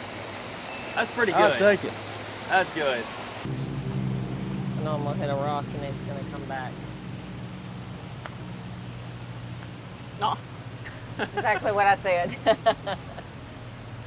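A man talks casually outdoors.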